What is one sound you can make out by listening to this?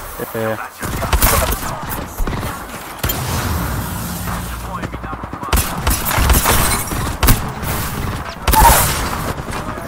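Rapid video-game gunfire rattles in bursts.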